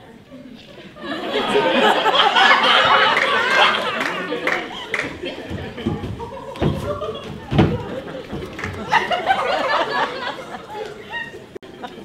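An audience laughs loudly in a theatre.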